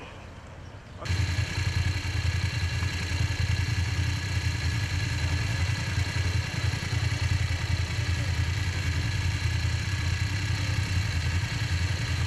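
Motorcycle engines idle with a steady low rumble.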